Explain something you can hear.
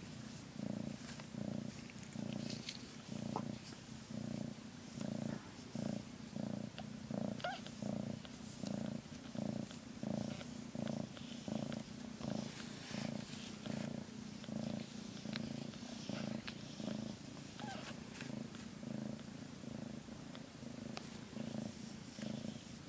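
A cat purrs loudly and steadily, very close.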